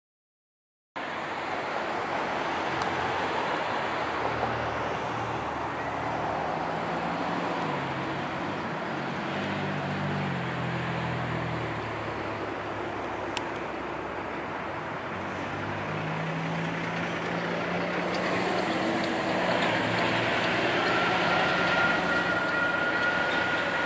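A diesel locomotive engine rumbles and throbs as a train approaches.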